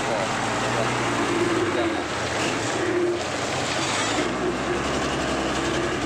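Truck tyres churn through thick mud.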